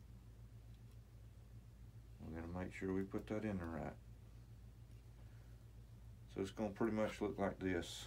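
A small plastic plug clicks into a socket.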